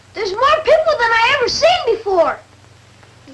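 A young woman speaks anxiously.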